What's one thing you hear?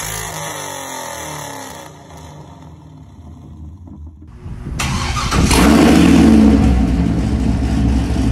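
A car engine idles with a deep exhaust rumble.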